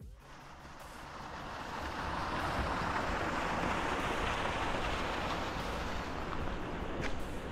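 A river rushes steadily in the distance.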